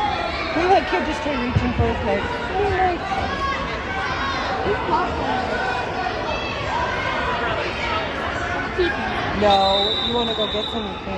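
Young wrestlers thud on a mat.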